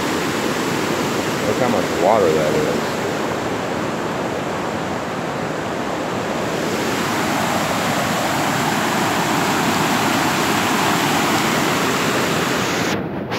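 Floodwater rushes and roars loudly.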